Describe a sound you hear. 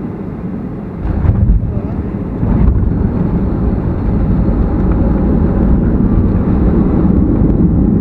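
An airliner's wheels thump down and rumble loudly along a runway.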